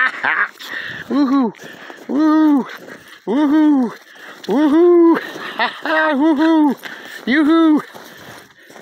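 A dog barks and whines excitedly close by.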